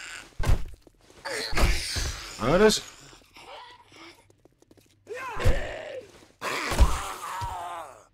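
A zombie growls.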